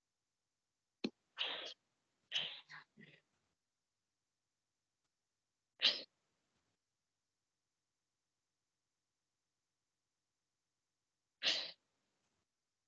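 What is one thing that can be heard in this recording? Young children speak short words one at a time over an online call.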